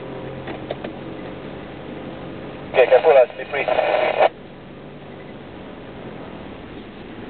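Tyres rumble over a bumpy dirt track.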